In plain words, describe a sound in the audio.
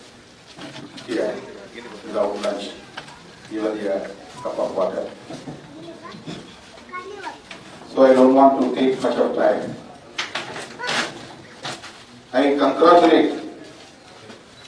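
A middle-aged man speaks steadily into a microphone, heard through a loudspeaker.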